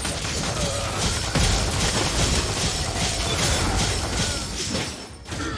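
Game battle effects crackle and boom with magic blasts and clashing weapons.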